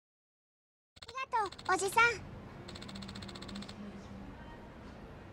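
A young girl exclaims excitedly.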